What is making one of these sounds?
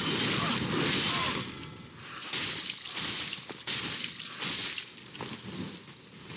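Swords clash and slash in a video game.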